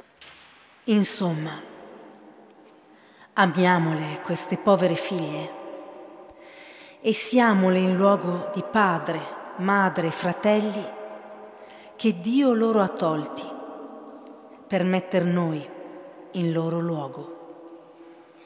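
A woman sings slowly into a microphone, echoing through a large hall.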